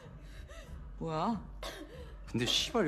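A young woman asks sharply.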